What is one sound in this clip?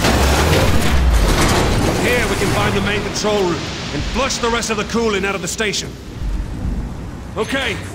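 Water rushes and roars nearby.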